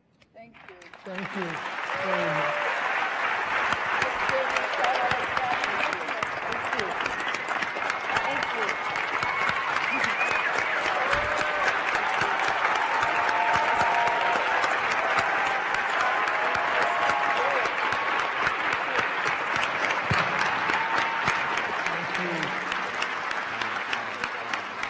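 A large audience applauds loudly in an echoing hall.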